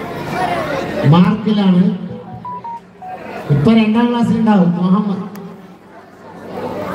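A man speaks loudly and with animation through a loudspeaker.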